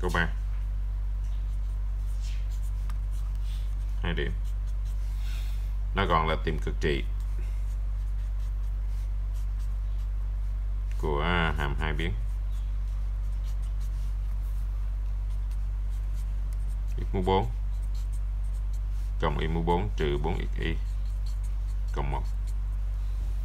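A felt-tip pen scratches softly across paper.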